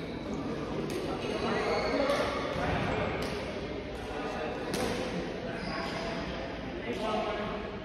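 Rackets strike a shuttlecock with sharp pops in an echoing hall.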